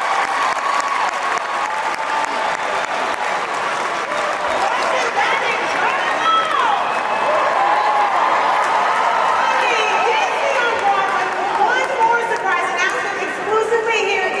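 A large crowd cheers loudly in a big echoing hall.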